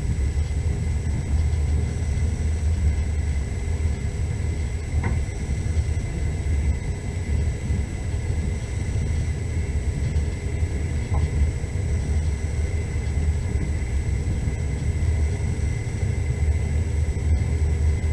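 Tyres rumble over packed snow.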